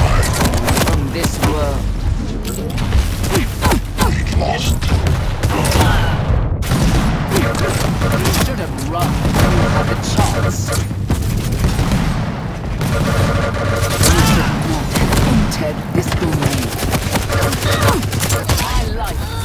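An electric beam weapon crackles and hums.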